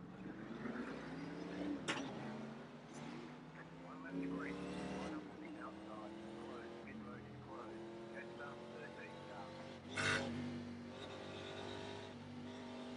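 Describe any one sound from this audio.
A race car engine hums steadily and rises in pitch as the car speeds up.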